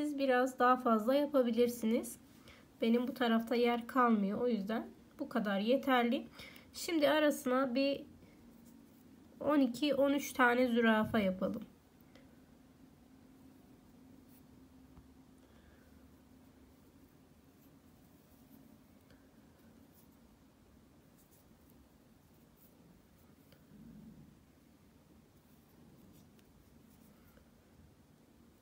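A needle and thread pull softly through thin fabric.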